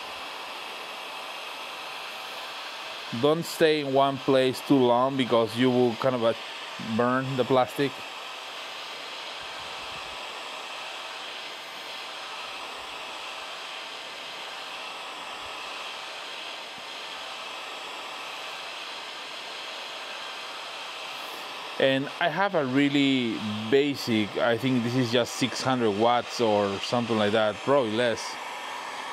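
A heat gun blows with a steady whooshing hiss.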